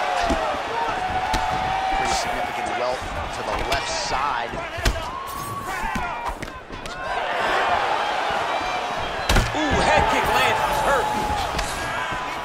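Heavy kicks and punches land with sharp thuds.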